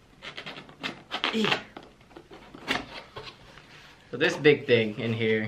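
A cardboard box rustles and scrapes as it is opened.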